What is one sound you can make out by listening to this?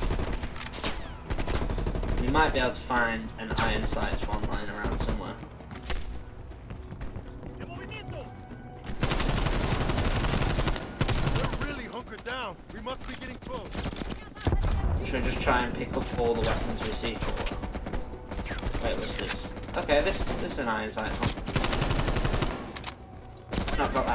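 Rifle shots fire in quick bursts, echoing in a large room.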